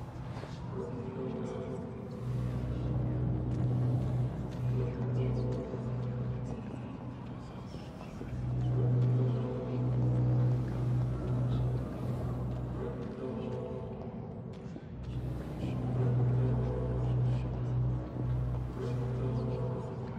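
Footsteps shuffle slowly on a stone floor.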